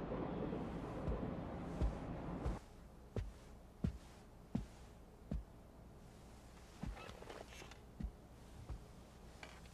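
Footsteps thud on a floor indoors.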